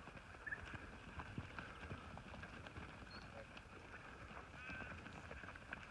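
Sheep bleat nearby.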